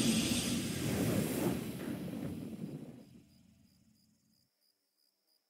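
A triumphant game fanfare swells and fades away.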